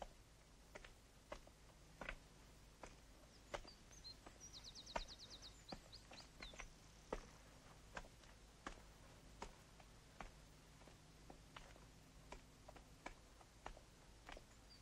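Footsteps crunch steadily on a cobbled path.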